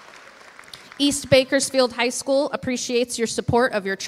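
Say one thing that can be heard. A woman speaks calmly into a microphone, heard through loudspeakers in a large hall.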